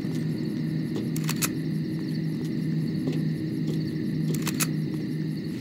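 Metal ladder rungs clank as someone climbs down.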